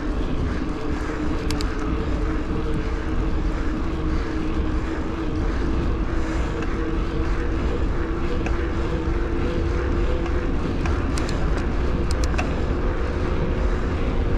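An electric bicycle motor whines steadily.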